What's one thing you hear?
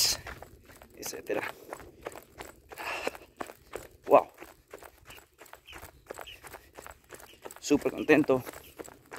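Footsteps crunch on a dirt path at a steady pace.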